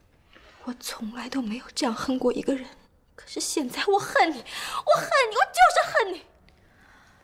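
A young woman speaks up close with rising emotion.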